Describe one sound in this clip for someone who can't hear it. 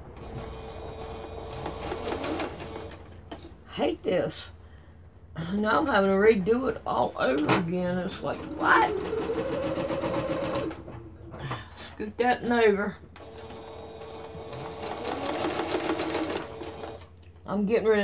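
A sewing machine whirs steadily in short bursts.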